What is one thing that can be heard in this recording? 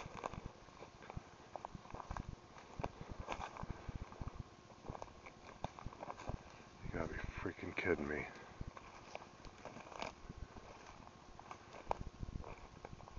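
Footsteps crunch and rustle over dry leaves and twigs.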